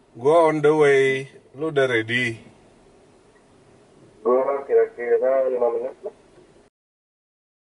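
A young man talks calmly, close by.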